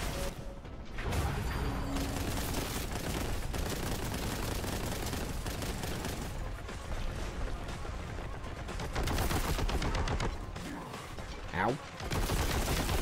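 Guns fire in rapid bursts with loud blasts.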